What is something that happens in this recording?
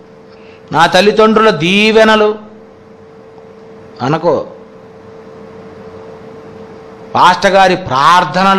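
A man speaks forcefully into a microphone, in short bursts with pauses.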